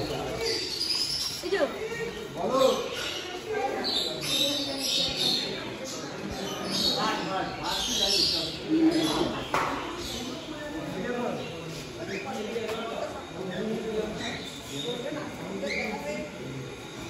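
Small birds chirp and twitter close by.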